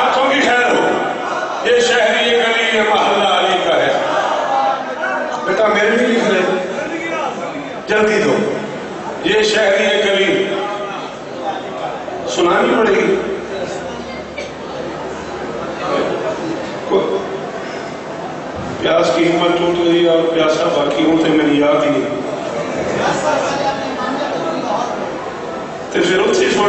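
A man speaks with passion into a microphone, heard through a loudspeaker in an echoing hall.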